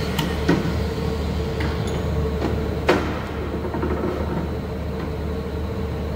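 Metal parts clank sharply against a steel table.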